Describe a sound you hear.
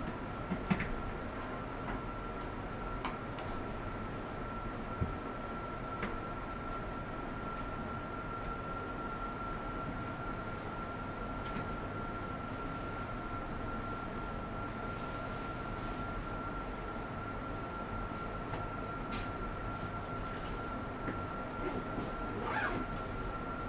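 A steady, high-pitched electronic tone whines without a break.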